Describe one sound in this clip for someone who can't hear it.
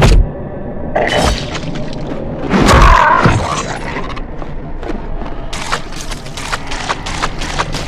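Sharp clicks and impacts of combat come in quick succession.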